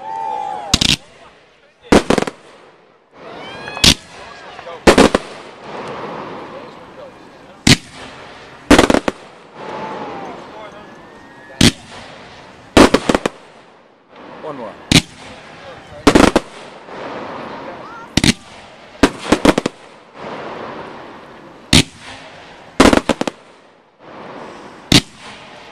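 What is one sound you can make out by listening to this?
Firework rockets whistle as they launch.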